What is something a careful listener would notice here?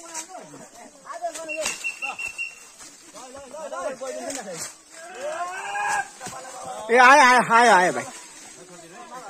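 Several men talk and call out to each other outdoors.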